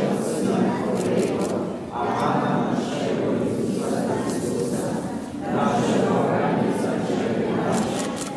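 An elderly man speaks steadily through a microphone and loudspeaker in a large echoing room.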